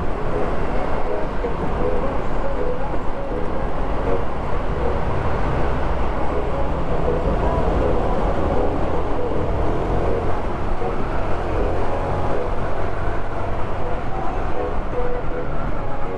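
Wind rushes past while riding.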